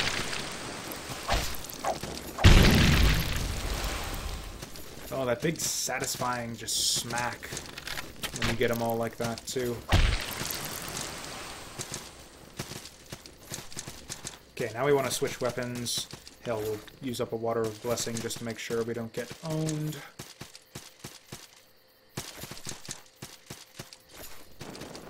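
Game sounds of sword strikes and bursts play.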